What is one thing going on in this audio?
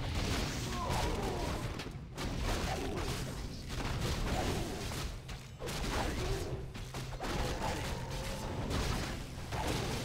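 A spell bursts with a fiery blast.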